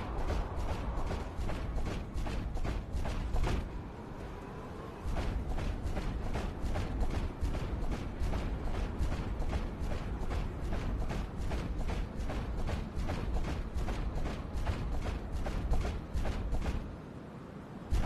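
Quick footsteps patter steadily.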